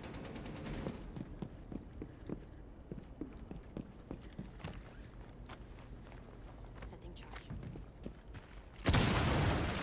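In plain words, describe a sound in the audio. Footsteps thud quickly on hard floors and stairs.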